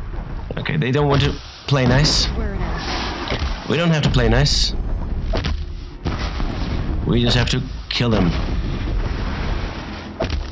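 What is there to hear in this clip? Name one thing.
A bowstring twangs as arrows are loosed, again and again.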